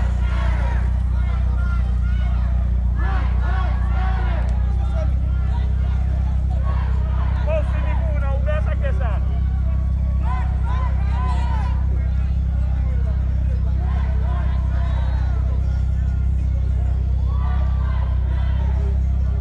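A crowd of young people shouts and chants outdoors.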